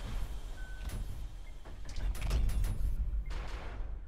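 Gunshots crack sharply in a video game.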